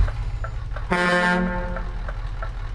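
A truck's air brakes give a short hiss.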